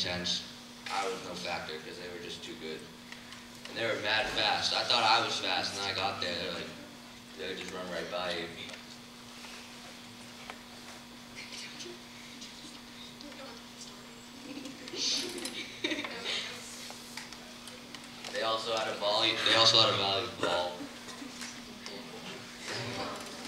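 A young woman speaks calmly into a microphone in a large echoing hall.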